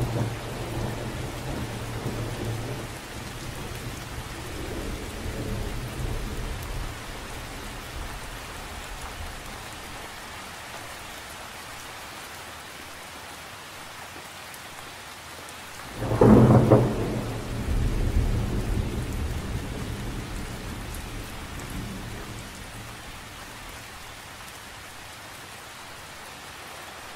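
Rain patters steadily on a lake's surface outdoors.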